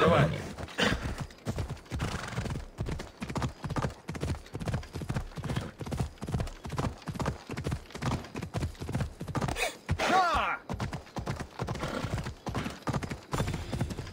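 Hooves thud rapidly and steadily on rough ground as a horse gallops.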